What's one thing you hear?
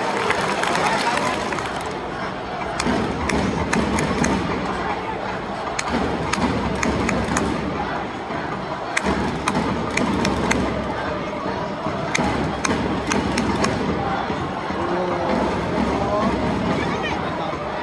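Nearby spectators clap and shout.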